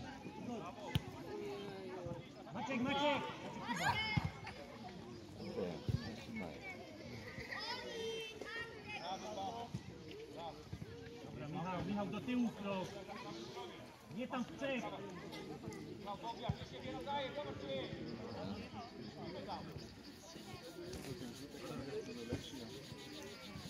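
Children shout and call out across an outdoor playing field.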